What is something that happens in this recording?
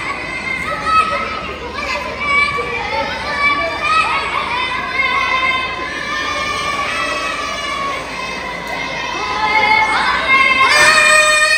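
A group of children sing together.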